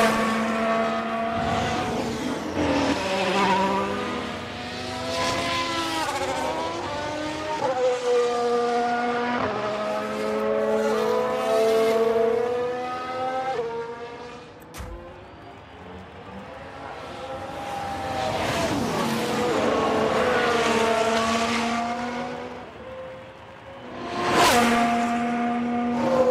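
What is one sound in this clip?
A racing car engine screams at high revs and shifts gears as the car speeds by.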